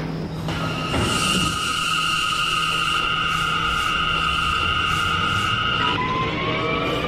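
A two-tone electronic chime sounds steadily.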